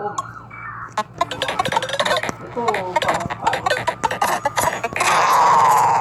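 Electronic game blips and chimes ring out in quick bursts.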